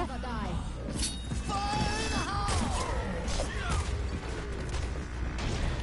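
Throwing stars whoosh and clink as they are hurled in quick bursts.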